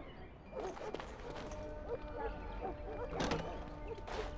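A heavy wooden door creaks open.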